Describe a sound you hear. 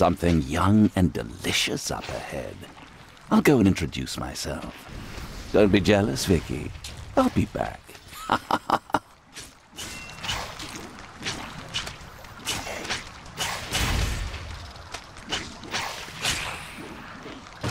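Magic blasts and weapon hits crackle and thud in quick bursts.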